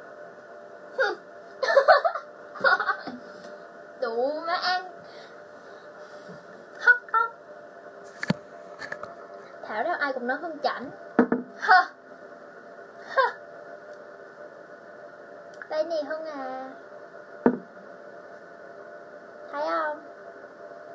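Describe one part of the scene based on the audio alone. A young woman talks and laughs with animation nearby.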